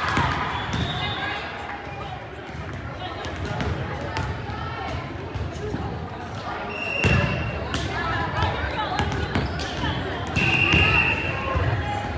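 Young women call out and chatter in a large echoing gym.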